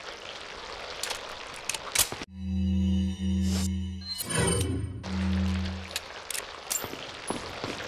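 A rifle's parts click and clack as it is handled and reloaded.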